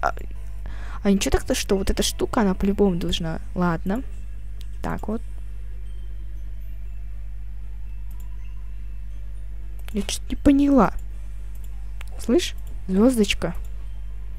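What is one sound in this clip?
A woman talks with animation into a headset microphone, in short bursts.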